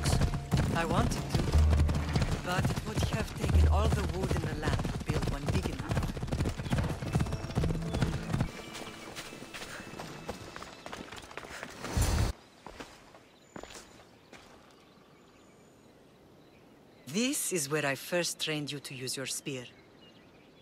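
An older woman speaks calmly, close by.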